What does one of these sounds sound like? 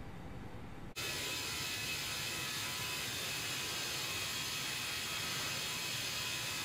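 Jet engines hum steadily at idle with a high whine.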